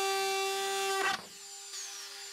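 A cut-out plastic disc clatters loose.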